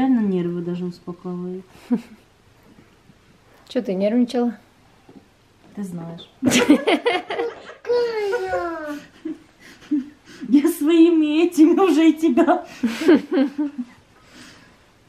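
A young woman talks playfully and with animation close by.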